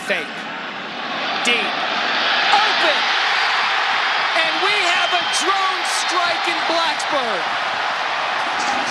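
A large stadium crowd roars, swelling loudly as a play unfolds.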